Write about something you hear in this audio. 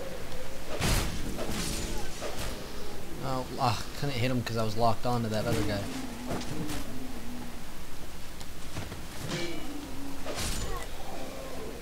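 Fire bursts with a short whoosh.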